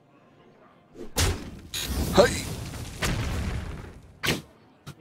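A video game plays a burst of crashing attack sounds.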